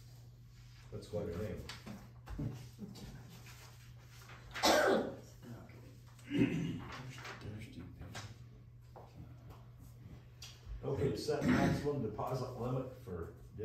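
An elderly man speaks calmly in a room.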